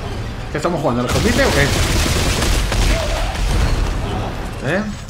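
A gun fires a rapid burst of sci-fi energy shots.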